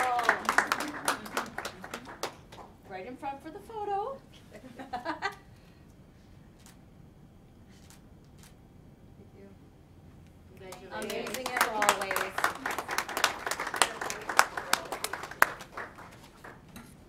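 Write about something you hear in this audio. A group of people applaud and cheer.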